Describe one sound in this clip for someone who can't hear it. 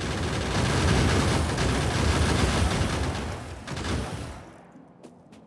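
Explosions rumble and crackle in a dense barrage, then fade away.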